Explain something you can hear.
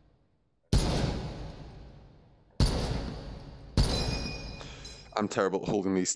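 A rifle fires loud shots that echo down a long hall.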